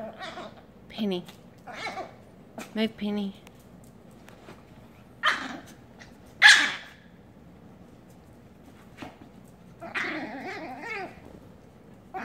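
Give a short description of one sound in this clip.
Small dogs bark and yap sharply, close by.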